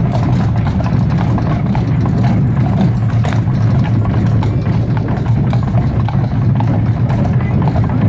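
Horse hooves clop steadily on cobblestones.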